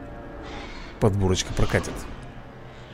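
A large dinosaur lets out a deep, bellowing roar.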